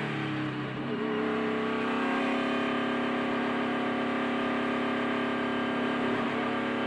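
A race car engine roars loudly at high speed, its pitch jumping higher after a moment.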